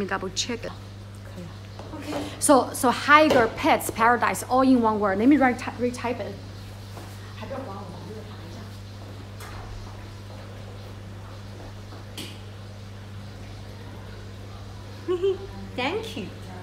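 A young woman speaks close up with animation.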